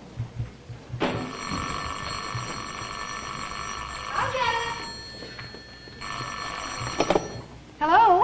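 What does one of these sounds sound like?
A telephone rings loudly.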